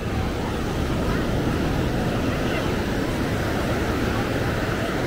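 Waves break and wash steadily onto a beach nearby.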